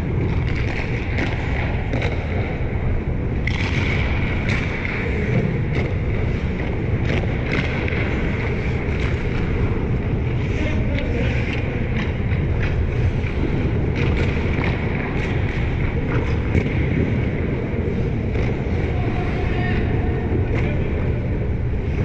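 Ice skates scrape and carve across an ice rink in a large echoing arena.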